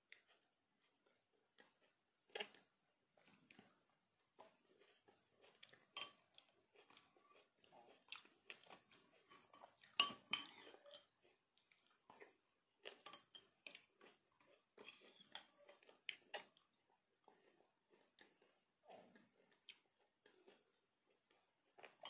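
A woman slurps and chews food close by.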